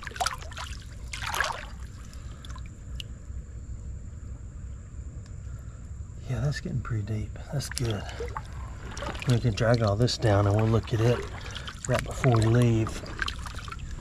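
Shallow water trickles gently over stones.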